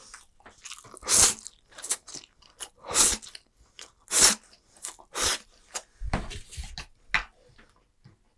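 A man slurps and chews noodles loudly, close to a microphone.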